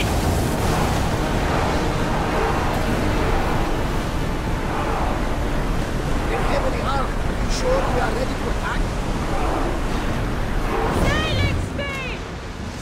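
Waves rush and splash against a ship's hull as it sails fast.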